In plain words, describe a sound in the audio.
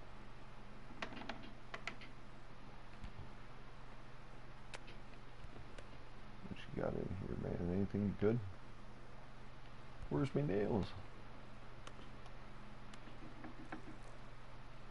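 A wooden door unlatches and creaks open.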